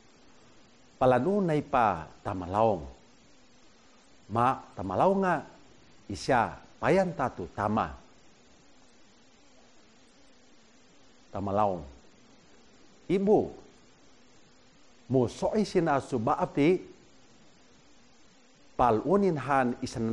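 A middle-aged man reads out phrases calmly and clearly into a close microphone, with pauses between them.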